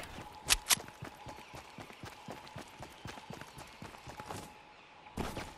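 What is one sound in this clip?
Quick footsteps run over grass.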